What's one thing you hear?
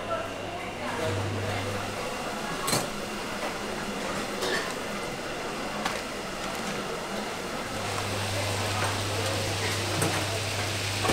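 Food sizzles and spits in a hot frying pan.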